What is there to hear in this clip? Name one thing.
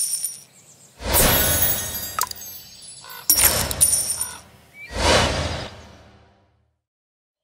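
Bright game effects whoosh and chime in short bursts.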